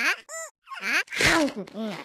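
A cartoon cat munches noisily on food.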